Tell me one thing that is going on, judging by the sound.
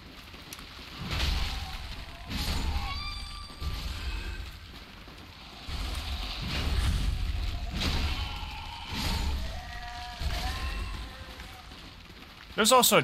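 Sword blows clang and thud in a fight.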